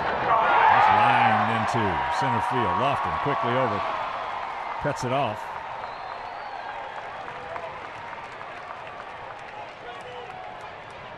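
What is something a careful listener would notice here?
A large crowd cheers loudly outdoors, then the cheering slowly dies down.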